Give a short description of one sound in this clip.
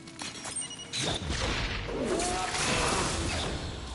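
Blades clash and strike in a sudden fight.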